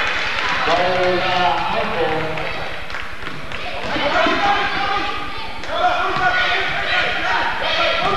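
Young women shout and call out in an echoing hall.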